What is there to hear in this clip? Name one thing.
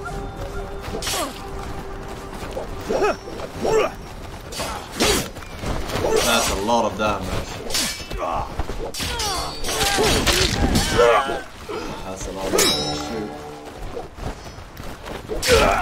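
Swords clash and clang in quick bursts.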